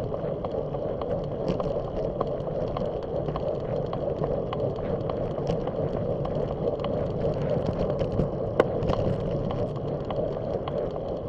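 Tyres rumble and whir on the pavement.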